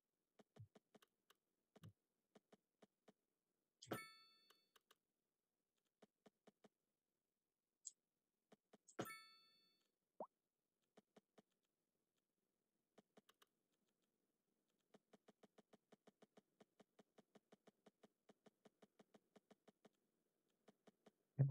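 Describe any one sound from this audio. Soft interface clicks tick repeatedly.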